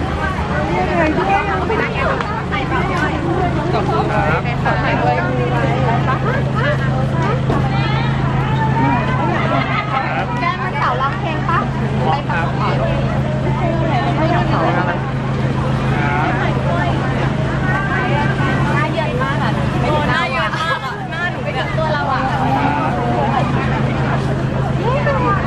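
A crowd of young women chatter and squeal excitedly close by.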